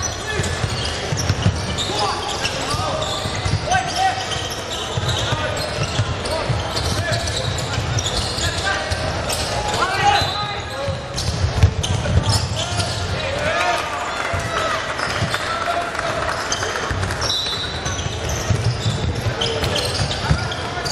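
A basketball bounces with dull thumps on the court.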